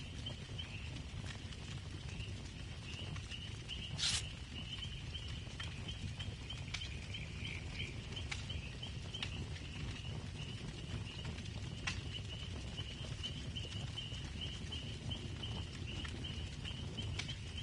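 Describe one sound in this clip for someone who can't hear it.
A campfire crackles and pops steadily.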